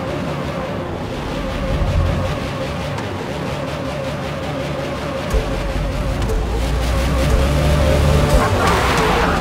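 A race car engine idles and revs loudly.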